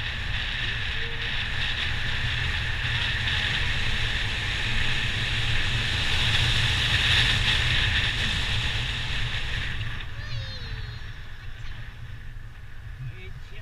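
A motorcycle engine hums steadily while riding along a road.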